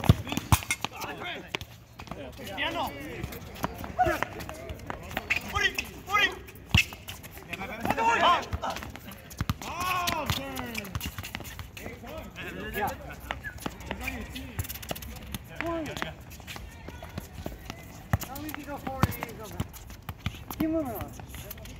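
A ball thuds as it is kicked and bounces on a hard court.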